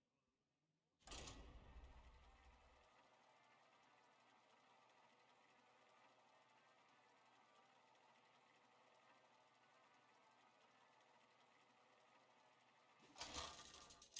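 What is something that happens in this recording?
A game's spinning reel whirs steadily.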